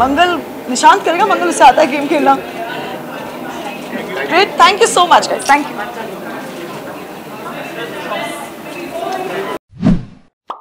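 A young woman speaks cheerfully into a nearby microphone.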